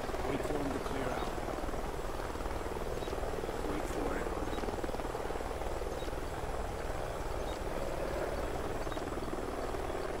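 A helicopter's rotor thuds overhead in the distance.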